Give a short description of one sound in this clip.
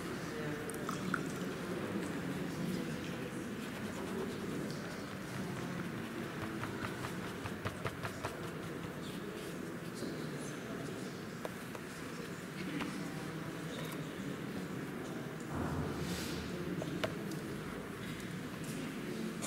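A paintbrush dabs and brushes softly on paper.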